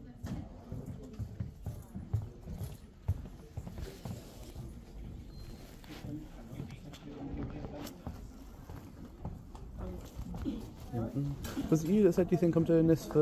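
Clothing rustles and brushes close by.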